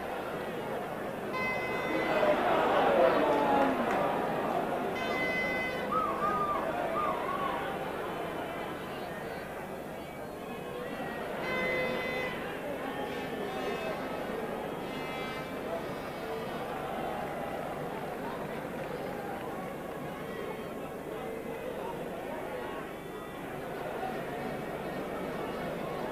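A large stadium crowd roars and murmurs outdoors, swelling loudly near the start and then settling.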